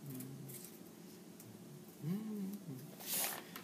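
Scissors snip through thin paper.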